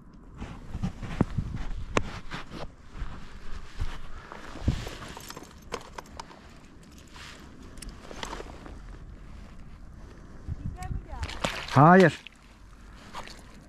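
A landing net rustles and knocks as it is handled by the water.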